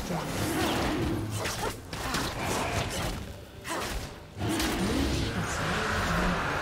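Magic blasts and impact sounds crackle in a fantasy battle.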